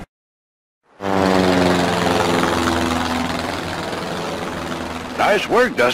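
A small propeller plane's engine drones and fades as the plane flies away.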